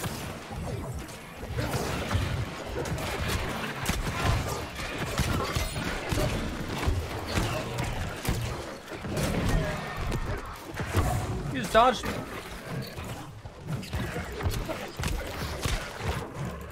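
Swords clash and magic blasts crackle in a fight.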